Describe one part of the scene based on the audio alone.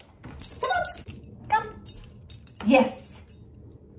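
A small dog's claws patter on a wooden floor.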